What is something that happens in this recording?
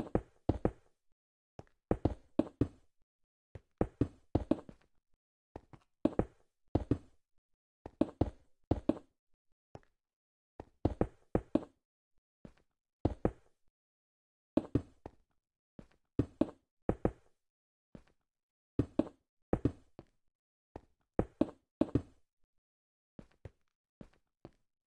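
Stone blocks are set in place with short, dull knocks that come in quick bursts.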